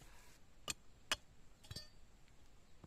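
A small hoe scrapes in dry soil.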